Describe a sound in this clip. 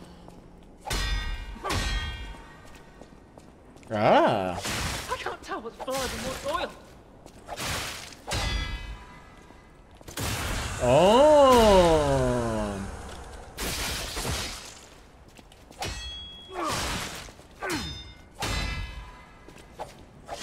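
Swords clash and clang in a fight.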